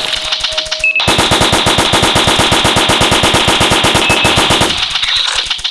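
An assault rifle fires in rapid automatic bursts.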